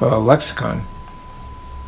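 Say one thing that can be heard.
An elderly man speaks briefly through a microphone.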